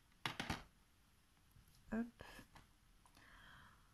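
A plastic disc case clacks as it is set down on a table.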